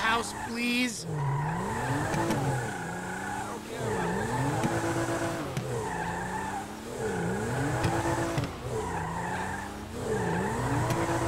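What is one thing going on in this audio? Tyres screech as a car spins in circles.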